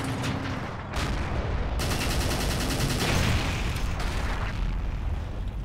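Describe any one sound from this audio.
A tank blows apart with a heavy blast and crackling debris.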